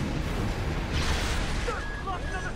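An electric blast crackles and roars.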